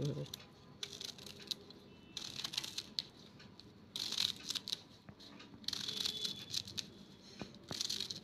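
A knife scrapes and slices crisply through a raw potato.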